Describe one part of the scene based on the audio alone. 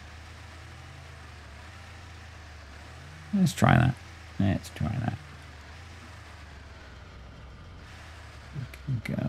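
An off-road engine drones low and steady.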